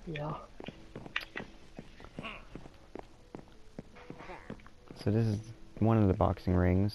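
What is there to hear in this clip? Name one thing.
Footsteps tap steadily on a wooden floor.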